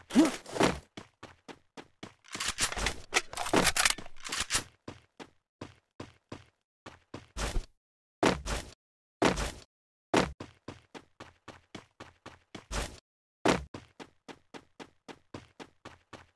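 Footsteps thud quickly and evenly on wooden floors and ground.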